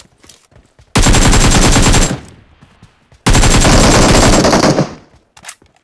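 A rifle fires rapid bursts of shots, loud and close.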